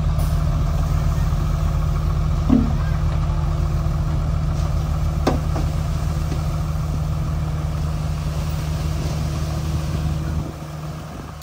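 A diesel truck engine rumbles steadily nearby.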